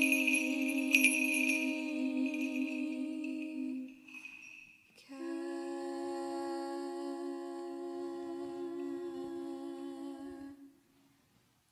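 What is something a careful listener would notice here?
A man chants in long, steady tones in a large echoing hall.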